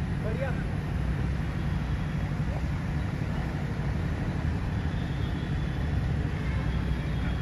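Young men call out to each other faintly from a distance.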